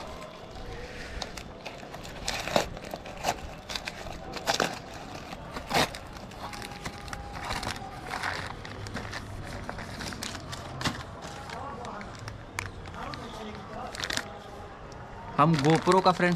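Cardboard and plastic packaging crinkles and rustles as it is torn open.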